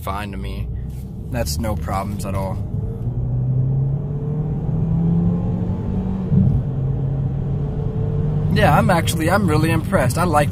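A car engine hums and revs up as the car speeds up.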